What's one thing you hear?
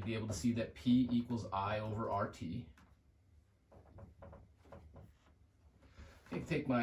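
A man speaks calmly, as if teaching.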